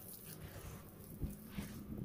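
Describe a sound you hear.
Water splashes from a hose onto concrete.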